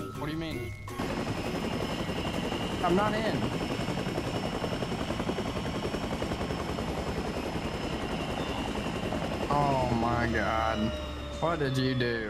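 A helicopter's rotor thumps and whirs steadily.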